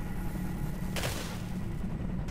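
A gunshot bangs sharply.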